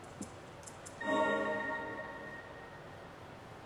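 A soft chime rings as a game menu opens.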